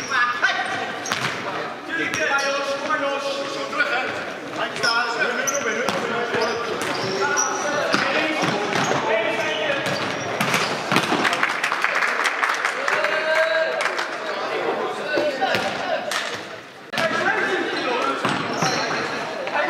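Sports shoes squeak sharply on a hard floor.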